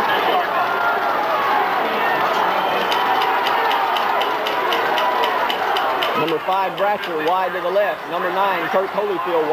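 A large crowd cheers and murmurs outdoors.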